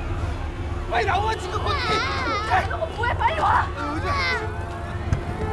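A woman shouts loudly.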